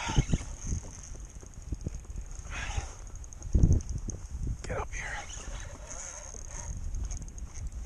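A fishing reel's drag clicks rapidly as line pulls out.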